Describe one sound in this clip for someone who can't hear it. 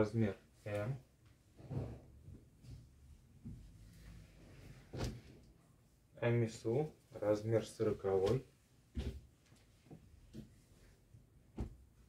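Fabric rustles as clothes are laid flat and smoothed by hand.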